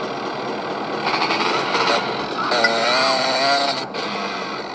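A motorbike engine revs and roars.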